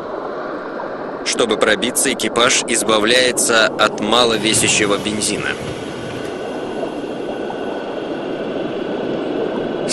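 A submarine's motor hums steadily underwater.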